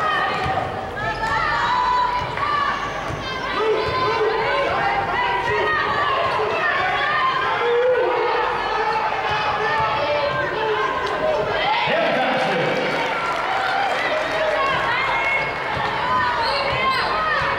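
A crowd of spectators chatters and calls out in a large indoor arena.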